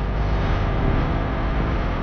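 A car whooshes past in the opposite direction.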